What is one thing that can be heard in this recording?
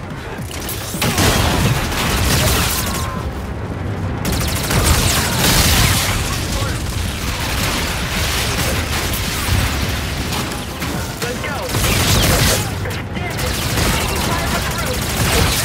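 Rapid gunfire bursts loudly over and over.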